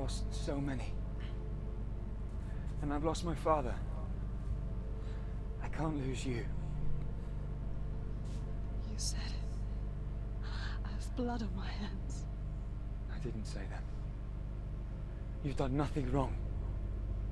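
A young woman speaks close by in a tense, emotional voice.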